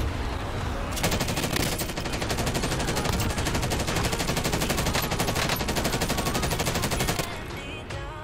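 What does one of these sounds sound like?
A rifle fires rapid bursts of automatic gunshots.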